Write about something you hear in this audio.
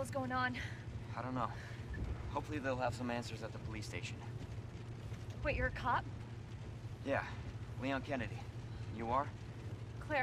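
A young man answers calmly.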